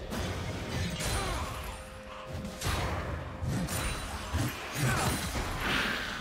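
Magic spells burst and crackle in a game battle.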